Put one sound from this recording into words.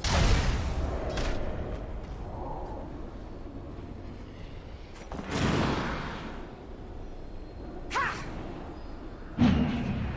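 Fiery game spells whoosh and boom in short bursts.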